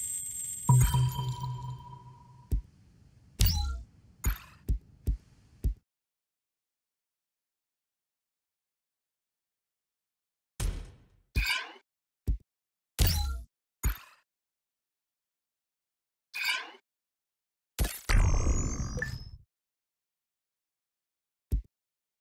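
Short electronic whooshes and chimes sound at intervals.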